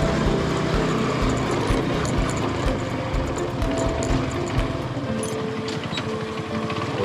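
Tyres bump and rattle over a rough dirt track.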